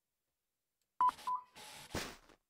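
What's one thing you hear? A checkout scanner beeps once.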